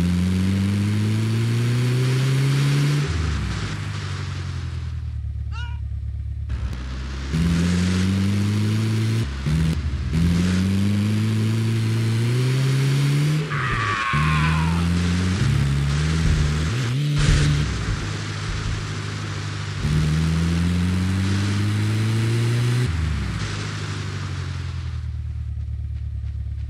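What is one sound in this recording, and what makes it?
Tyres rumble and crunch over sand and grass.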